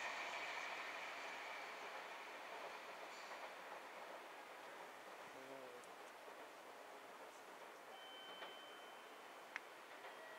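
A train rolls away along the tracks and slowly fades.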